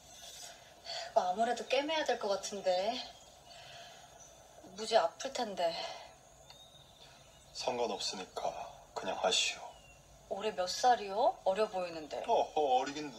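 A young woman speaks calmly, heard through a speaker.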